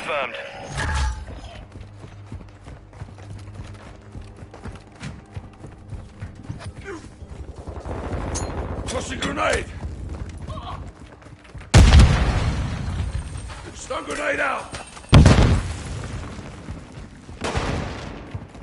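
Gunshots and explosions boom.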